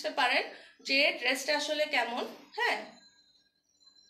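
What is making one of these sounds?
A woman speaks animatedly, close by.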